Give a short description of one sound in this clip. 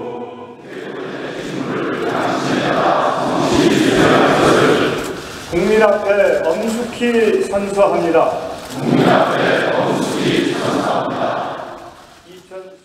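A crowd of men and women recites together in a large echoing hall.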